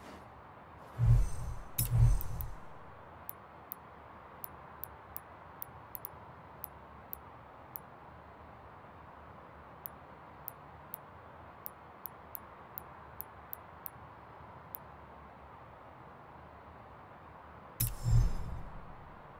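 A deep whoosh sweeps in as the menu changes.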